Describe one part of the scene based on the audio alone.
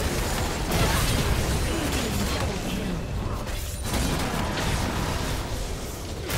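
Spell effects burst and clash in a fast video game battle.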